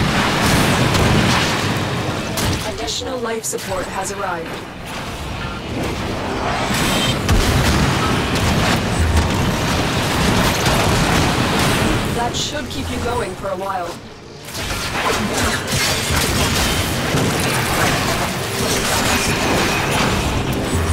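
Fiery bursts roar and hiss.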